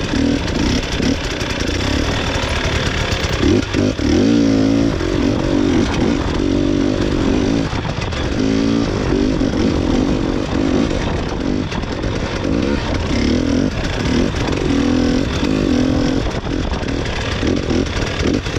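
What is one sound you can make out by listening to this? Snow crunches under the snowmobile's tracks.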